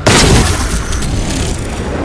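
An explosion bursts and rumbles.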